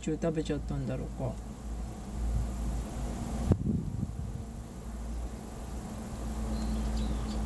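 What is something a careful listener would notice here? A small animal rustles through grass close by.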